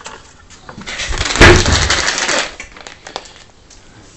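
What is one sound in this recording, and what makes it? A plastic treat packet crinkles and rustles.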